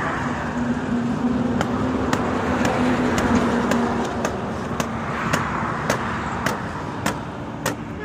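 A stick beats repeatedly on a cloth sack with dull thuds.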